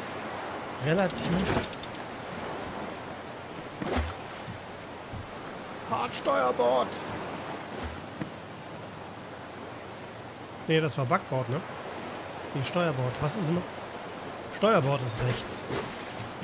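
Waves wash steadily against a wooden boat's hull.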